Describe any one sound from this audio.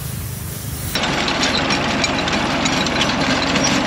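A tractor engine runs with a loud, steady rumble.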